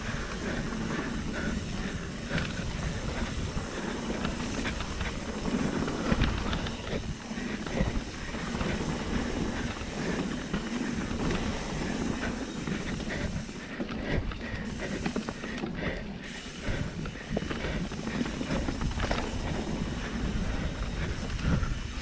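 A mountain bike rolls fast over a bumpy dirt trail.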